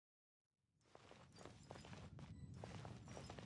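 Light footsteps scuff across stone.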